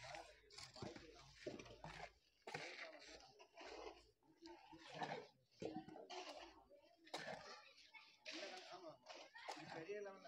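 Clay bricks clink and knock together as they are lifted and stacked.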